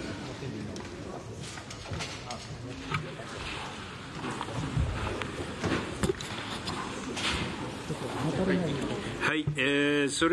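Many people chatter and murmur in a large room.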